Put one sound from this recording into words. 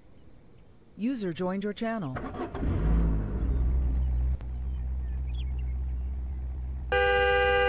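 A car engine cranks, starts and settles into a low, steady idle.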